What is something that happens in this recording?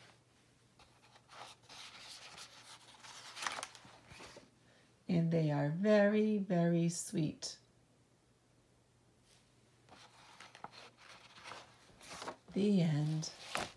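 Paper pages rustle as a book's pages are turned by hand.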